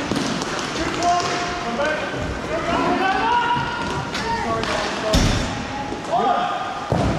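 Young men shout to each other across an echoing rink.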